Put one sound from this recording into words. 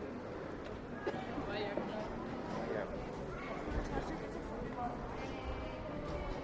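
Men and women chatter nearby as they walk past.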